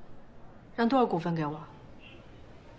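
A young woman asks a question calmly, close by.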